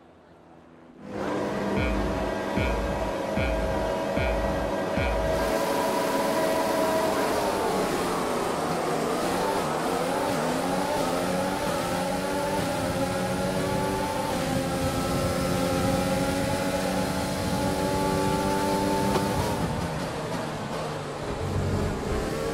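A racing car engine revs and roars loudly, rising and dropping in pitch as the car shifts through gears.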